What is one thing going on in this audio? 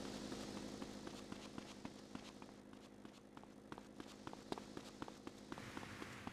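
Footsteps run quickly on a hard surface.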